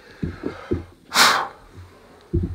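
A man blows sawdust off a board in a short puff.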